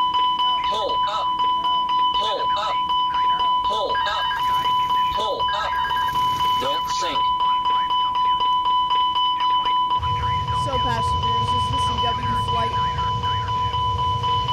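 A young man talks through a microphone.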